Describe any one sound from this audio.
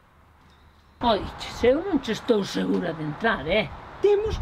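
An elderly woman talks with animation up close.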